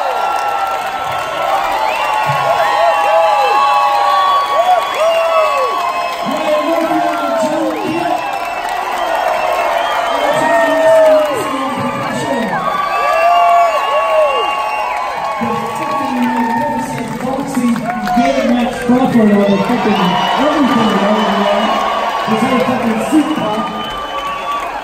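A live band plays music through loudspeakers.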